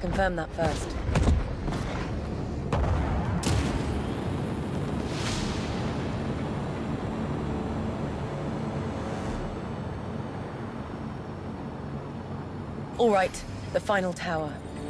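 A spaceship engine hums and rumbles steadily.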